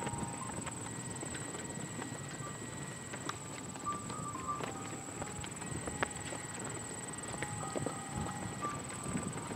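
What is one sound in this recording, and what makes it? A horse trots with soft, rhythmic hoofbeats on loose footing.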